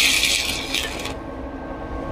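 An electric welding arc crackles and hisses.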